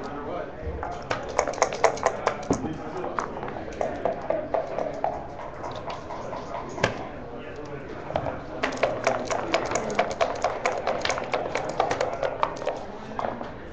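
Dice rattle in a cup and clatter onto a board.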